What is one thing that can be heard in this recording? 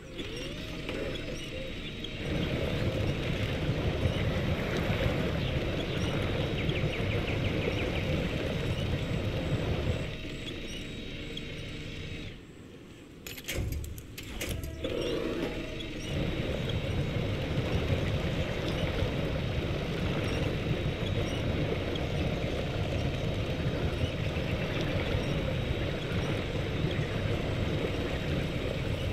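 A truck engine rumbles and strains as it drives through deep water.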